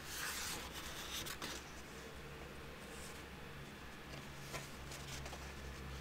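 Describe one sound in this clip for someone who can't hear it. Paper pages rustle softly as a hand turns them.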